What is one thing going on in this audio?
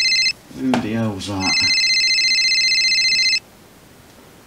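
A phone rings with a steady electronic trill.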